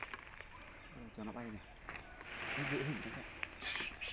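A monkey grunts softly in the treetops.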